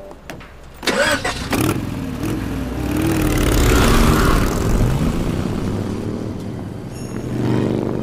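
A motorcycle engine starts and revs loudly, then fades away.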